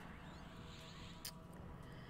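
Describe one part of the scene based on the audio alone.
A magic spell shimmers with a bright whoosh.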